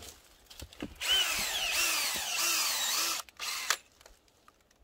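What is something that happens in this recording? A power drill whirs loudly as it bores into wood.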